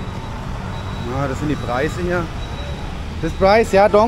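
A young man speaks nearby.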